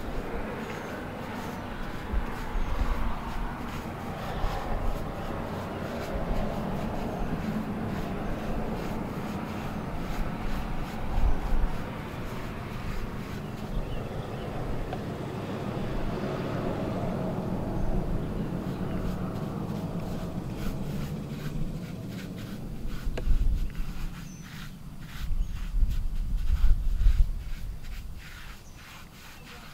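A stiff brush scrubs against a stone wall.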